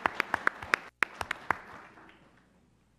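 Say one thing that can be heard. A crowd applauds in a room.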